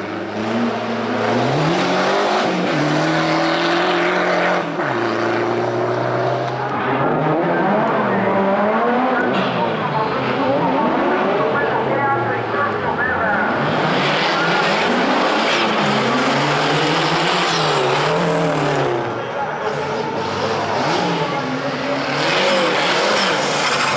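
A rally car engine roars and revs hard, rising and falling in pitch.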